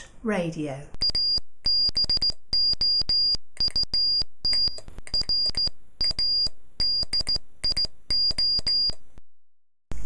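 A Morse code tone beeps in short and long bursts.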